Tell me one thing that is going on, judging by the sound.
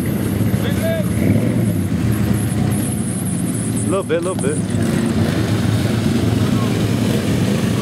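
Tyres churn through wet mud.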